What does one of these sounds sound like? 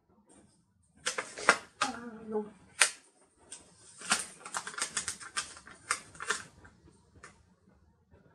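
Paper rustles and crinkles as fingers handle and press a sticker.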